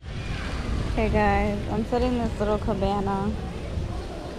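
A young woman sings a short tune close by.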